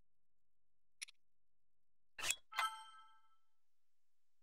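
Short bright menu chimes ring out.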